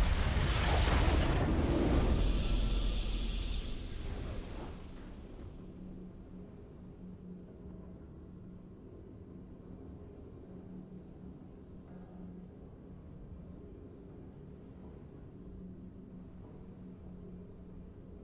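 A triumphant victory tune plays softly.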